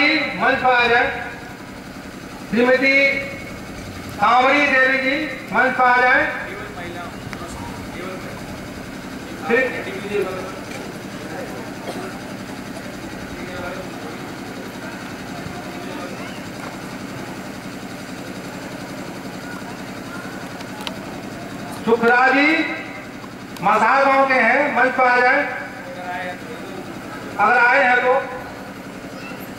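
A man speaks loudly into a microphone over a loudspeaker, outdoors, in short bursts with pauses.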